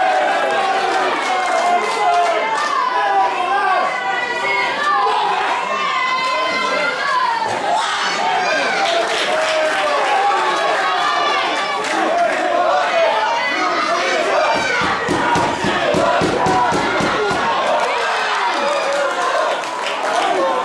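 Rugby players shout to each other across an open field.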